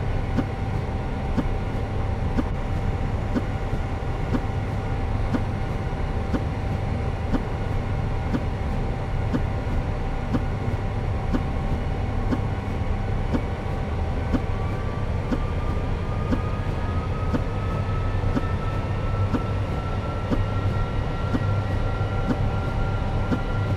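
Jet engines drone steadily.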